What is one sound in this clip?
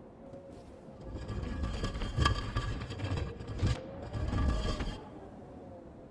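A heavy stone slab grinds and scrapes as it is pushed open.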